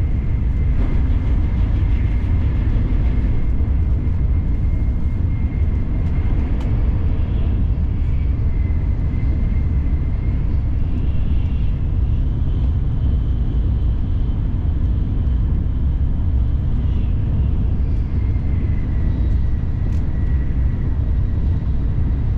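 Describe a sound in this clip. A train rumbles along the tracks at speed, with a steady, loud roar.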